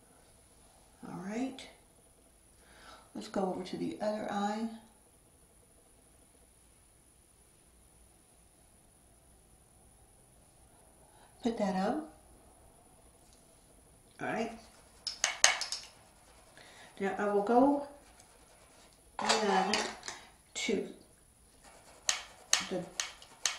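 A middle-aged woman talks calmly and close to a microphone, in short bursts with pauses.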